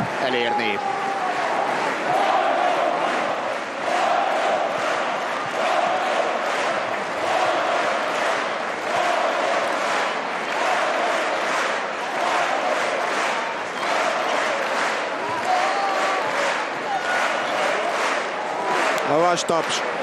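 Spectators clap their hands in a steady rhythm.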